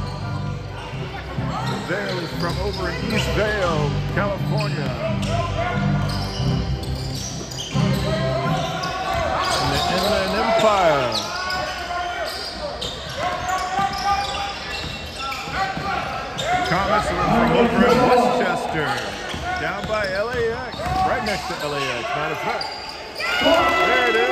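A crowd shouts and cheers in a large echoing gym.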